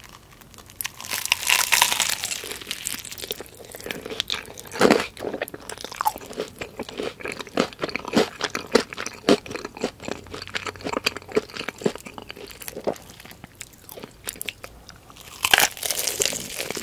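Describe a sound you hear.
A young woman bites into crispy fried chicken with a loud crunch close to a microphone.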